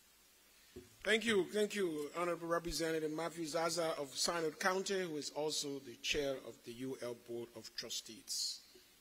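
A man speaks calmly into a microphone, heard through loudspeakers in a large hall.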